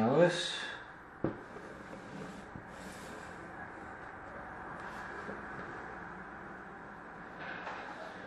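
Magnetic tiles click and slide against a board.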